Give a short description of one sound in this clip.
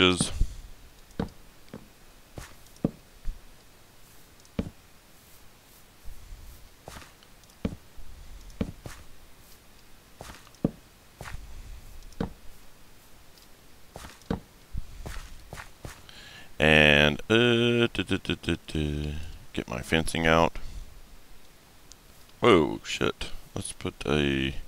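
Blocks are set down with short knocks.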